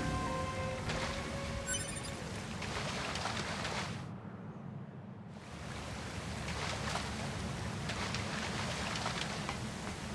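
Water splashes as footsteps wade through it.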